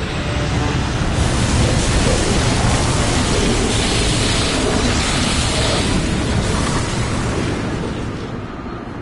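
Water churns and splashes loudly in a pool.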